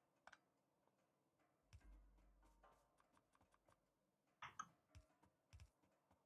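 A soft interface click sounds as a menu opens and closes.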